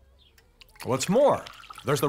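Liquid pours from a glass bottle into a glass.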